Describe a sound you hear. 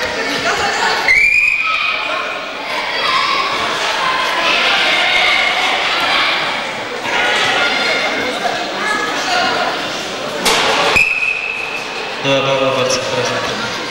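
A crowd of spectators murmurs and chatters in an echoing hall.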